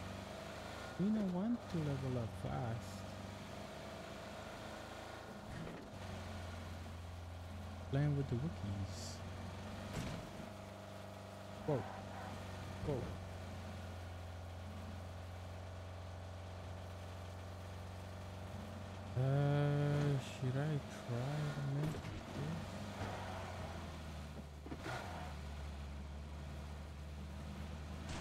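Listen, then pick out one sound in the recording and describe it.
A car engine hums steadily as a vehicle drives over rough ground.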